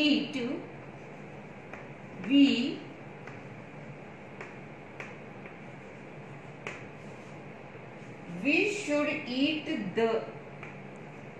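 A woman speaks calmly in short phrases close by.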